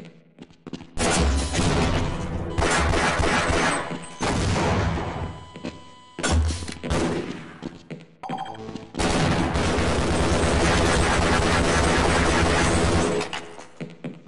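Gunfire rattles loudly in rapid bursts.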